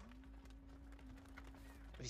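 A fire crackles in a metal barrel.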